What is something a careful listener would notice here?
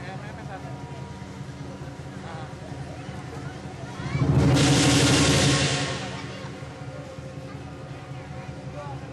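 A large crowd murmurs in an echoing hall.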